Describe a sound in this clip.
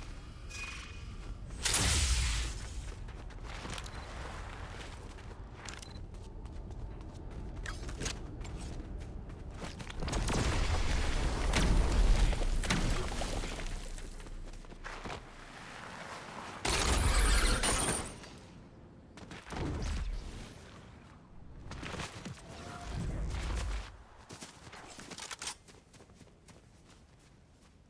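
Quick footsteps run over ground.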